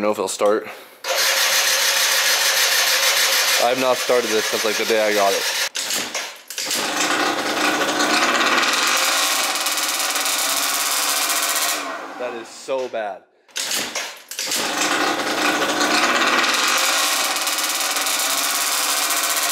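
A scooter engine starts and runs loudly, revving now and then.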